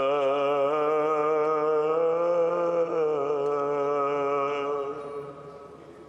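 A group of women chant a long, wavering note that fades away.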